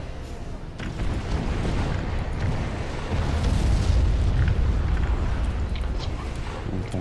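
Explosions boom and rumble in a game.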